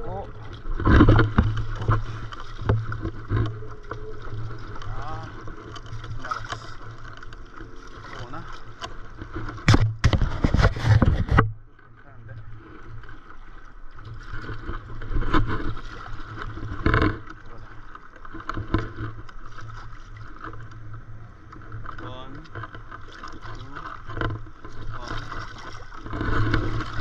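A paddle dips and pulls through calm sea water.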